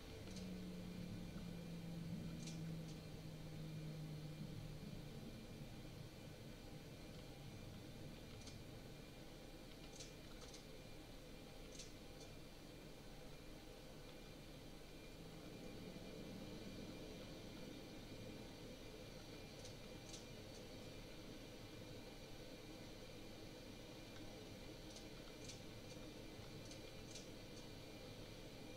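A jet engine hums steadily at low power.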